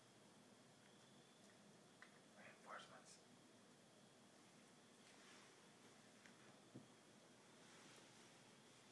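A cat's paws patter softly on a wooden floor.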